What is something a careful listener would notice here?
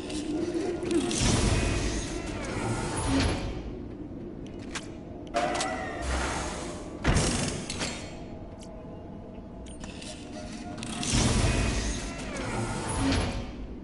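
A heavy chest swings open with a loud whoosh.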